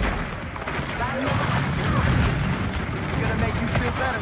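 A video game's heavy weapon fires with booming thuds.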